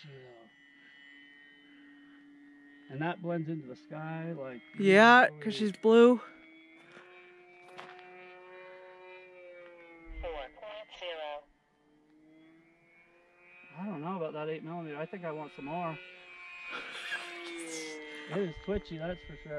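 A drone whirs with a steady high hum.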